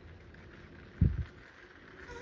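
A knock sounds on a door.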